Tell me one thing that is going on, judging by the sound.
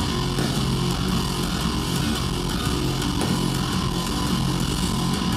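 Loud live music with heavy bass plays through a large sound system.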